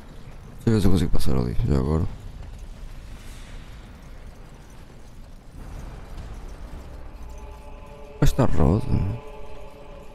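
A young man speaks briefly with animation into a close microphone.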